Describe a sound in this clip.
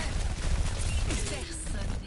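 A machine pistol fires rapid bursts.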